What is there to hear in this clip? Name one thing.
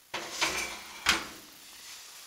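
A drawer is kicked shut with a bang.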